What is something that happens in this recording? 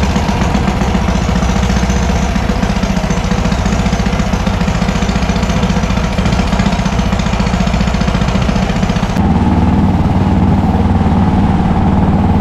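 A boat engine drones steadily and closely.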